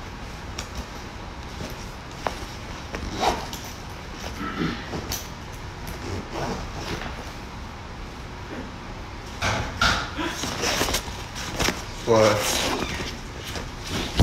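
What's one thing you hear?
Plastic packaging crinkles in a young man's hands.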